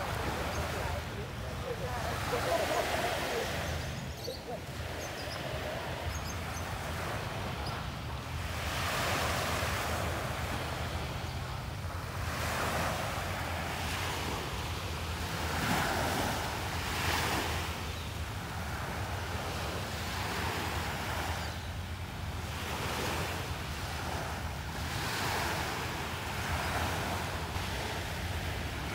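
Small waves break and wash up onto a sandy shore in regular surges.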